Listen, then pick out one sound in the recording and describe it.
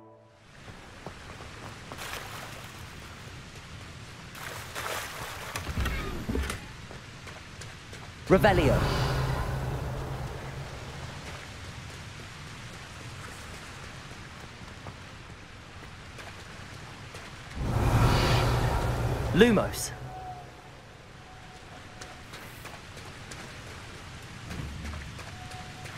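Footsteps tap on stone in an echoing passage.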